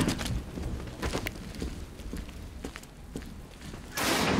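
Heavy footsteps clank on a metal grating.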